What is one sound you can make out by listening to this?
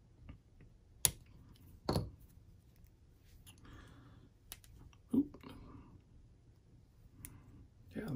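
Small metal parts click sharply, now and then, close by.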